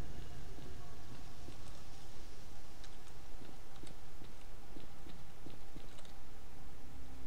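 Footsteps tread slowly on a hard floor in a quiet, echoing room.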